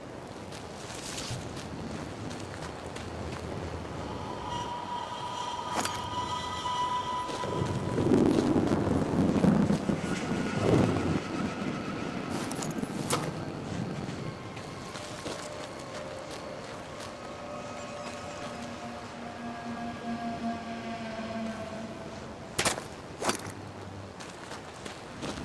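Footsteps crunch slowly on gravel and stone.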